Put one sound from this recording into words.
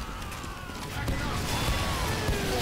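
Explosions boom in rapid bursts.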